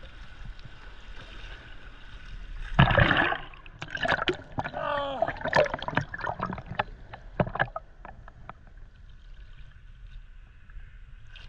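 Ocean water splashes and sloshes close by.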